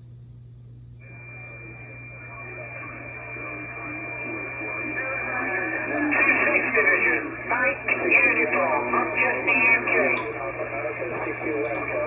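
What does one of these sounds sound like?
A radio receiver hisses and crackles with static through its loudspeaker.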